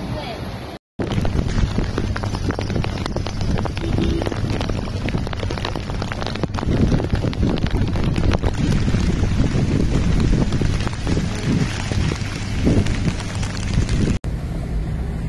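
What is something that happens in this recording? Heavy rain pours down in strong wind.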